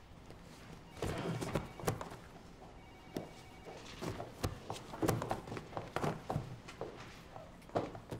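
Plastic and fabric rustle as things are pulled from a box.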